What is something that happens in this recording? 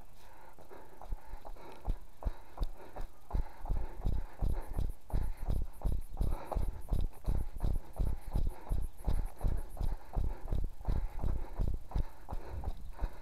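Footsteps run on wet pavement.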